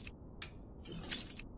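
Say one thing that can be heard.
Short interface clicks sound a few times.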